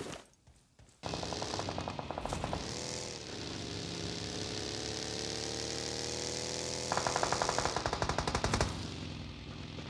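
A buggy engine roars and revs as it drives.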